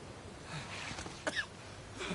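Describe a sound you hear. Water splashes as a man crawls through it.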